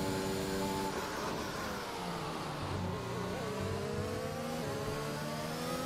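A racing car's gears shift with quick changes in engine pitch.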